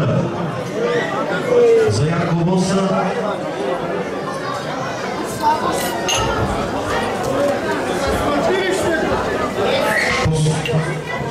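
A crowd of men and women chat loudly nearby.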